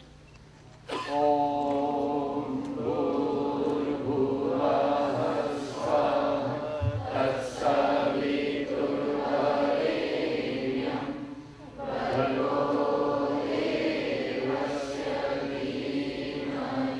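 A group of men sing a chant together into microphones.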